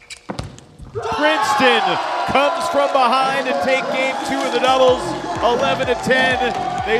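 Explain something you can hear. A crowd cheers and applauds loudly in a large hall.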